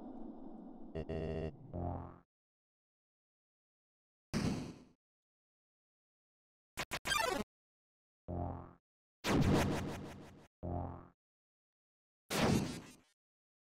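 Short electronic game sound effects ring out in sharp bursts.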